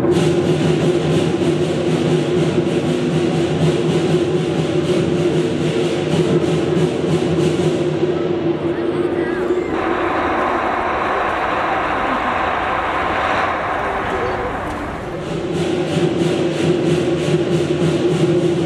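Performers' feet thump as they land on metal poles.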